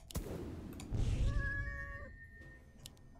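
A magical spell whooshes and chimes.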